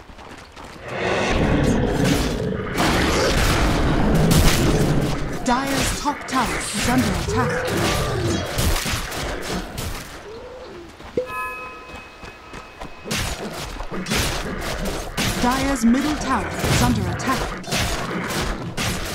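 Blows and spell effects crackle and thud in a video game fight.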